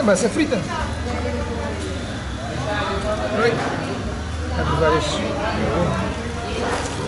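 An elderly woman talks casually nearby.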